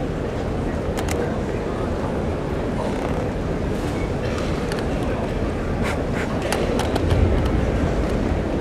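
Bamboo swords clack sharply against each other.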